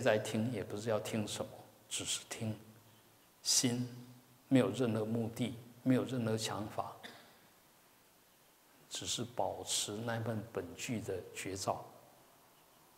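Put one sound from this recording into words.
A middle-aged man speaks calmly and slowly through a headset microphone.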